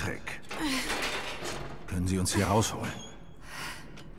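A young woman rattles metal bars.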